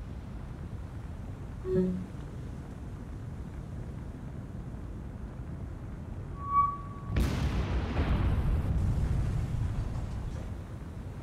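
Flames roar on a burning ship.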